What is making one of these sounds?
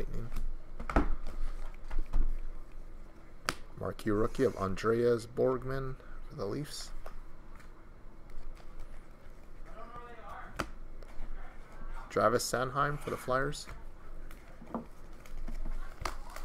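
Trading cards rustle and flick as they are shuffled.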